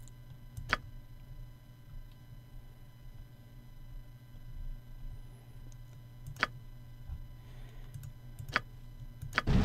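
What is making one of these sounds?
Short, sharp clicks sound now and then.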